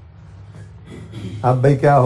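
A man speaks in a calm lecturing voice through a microphone.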